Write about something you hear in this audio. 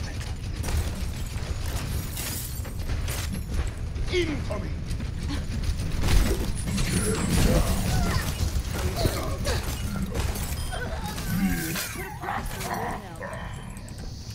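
A heavy gun fires in loud, rapid bursts.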